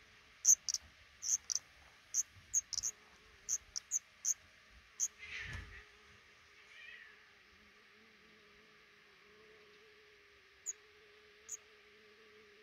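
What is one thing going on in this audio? Nestling birds give short, high cheeps in quick bursts, then fall mostly quiet.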